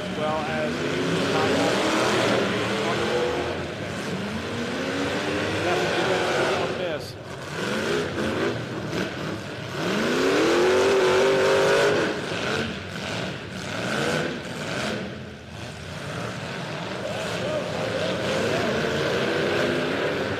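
Car engines rev and roar loudly.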